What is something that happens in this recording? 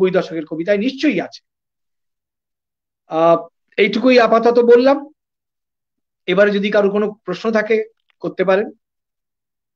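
An older man speaks with animation over an online call.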